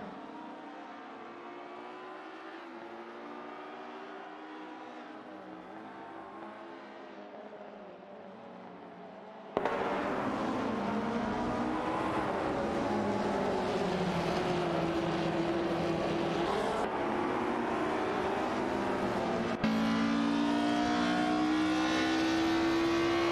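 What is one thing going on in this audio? Racing car engines whine, rising and falling in pitch, and grow much louder partway through.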